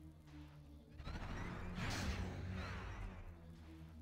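A spaceship engine whooshes as it speeds up.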